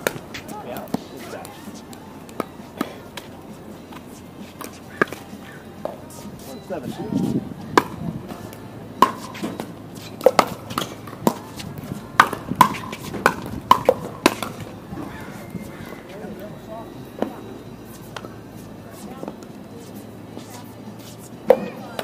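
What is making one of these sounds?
Paddles pop sharply against a plastic ball, back and forth.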